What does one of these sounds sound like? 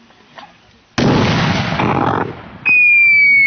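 A mortar shell explodes with a loud boom outdoors.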